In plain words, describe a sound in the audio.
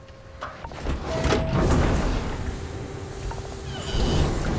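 A heavy airlock door hisses and slides open.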